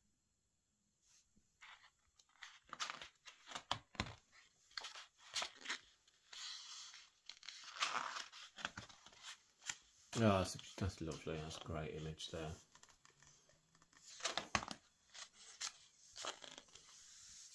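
Fingers brush and slide over glossy paper.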